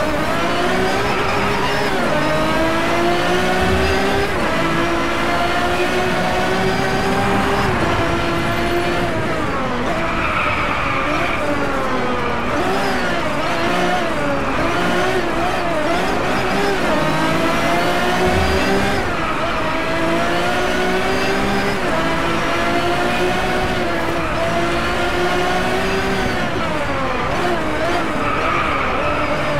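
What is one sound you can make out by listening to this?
A racing supercar engine revs hard and shifts up through the gears.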